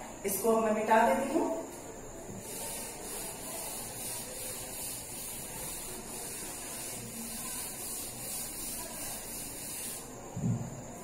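A cloth rubs steadily across a chalkboard.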